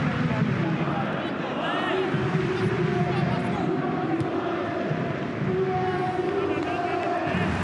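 A large crowd chants and sings loudly in a stadium.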